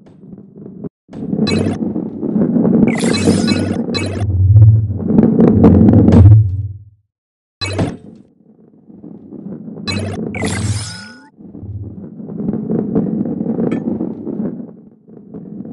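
A heavy ball rolls and rumbles along a wooden track.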